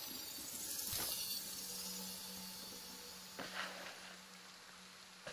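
A soft crafting sound hums and rustles briefly.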